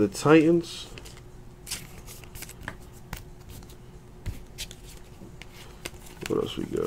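Trading cards rustle and slide against each other.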